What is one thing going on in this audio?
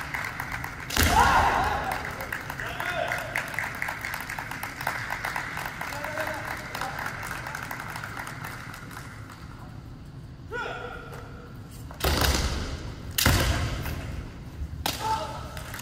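Bamboo swords clash and strike in sharp cracks in a large echoing hall.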